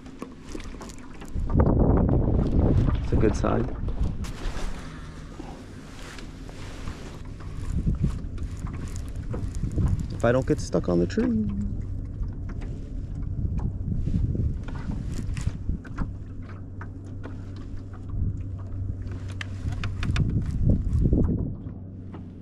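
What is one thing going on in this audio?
Wind blows over the microphone outdoors.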